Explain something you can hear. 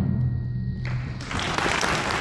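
A concert band plays a final low chord.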